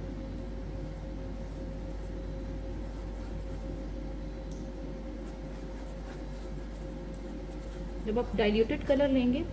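A paintbrush brushes softly across a rough surface.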